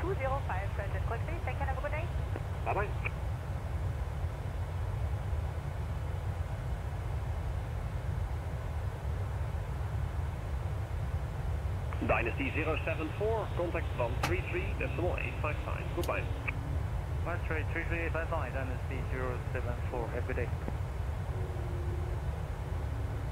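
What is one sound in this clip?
A jet engine drones steadily in a low rumble.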